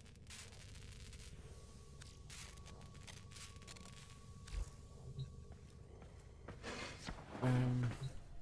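A man speaks close to a microphone in a low, calm voice.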